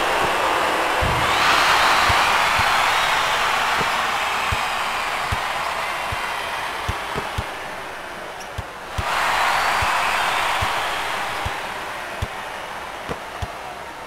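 A crowd roars and cheers in a large arena.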